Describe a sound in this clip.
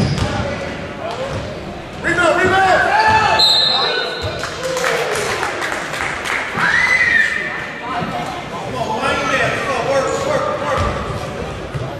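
Young men shout across a large echoing gym.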